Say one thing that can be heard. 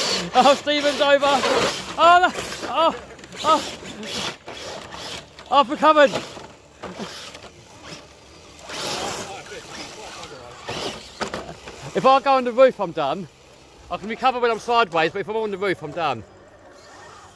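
Small electric motors whine as toy trucks drive.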